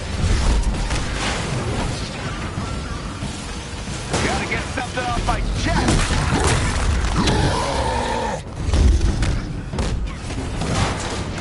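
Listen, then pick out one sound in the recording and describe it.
Heavy blows thud and crash in a fight.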